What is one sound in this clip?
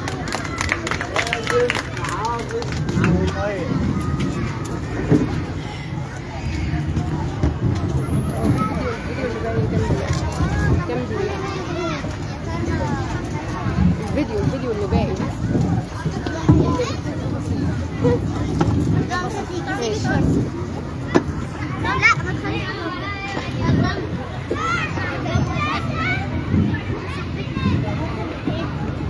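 Children's high voices squeal and call out close by.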